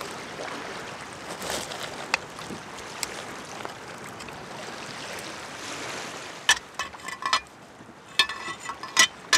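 Hands scrape and rub a stiff dried fish skin.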